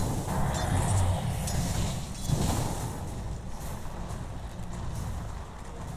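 Weapons clash and strike in a game fight.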